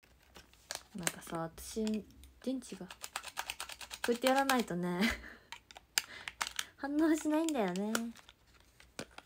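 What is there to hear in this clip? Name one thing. A young woman talks animatedly close to a phone microphone.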